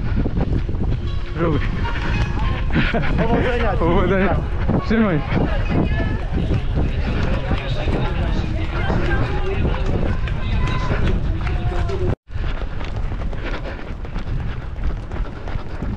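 Runners' footsteps patter on the ground.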